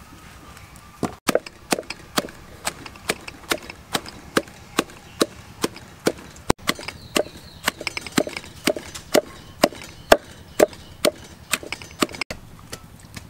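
A wooden pestle pounds leaves in a clay mortar with steady thuds.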